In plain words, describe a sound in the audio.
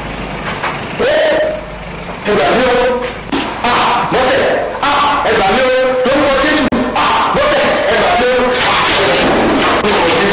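A man wails and cries out loudly in distress.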